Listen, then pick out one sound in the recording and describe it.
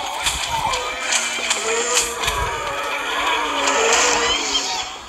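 Game shots pop and splat in rapid bursts.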